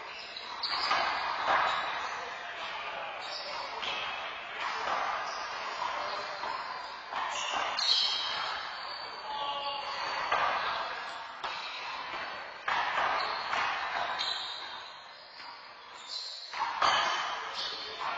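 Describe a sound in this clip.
A rubber ball smacks against walls and the floor, echoing in a large hard-walled hall.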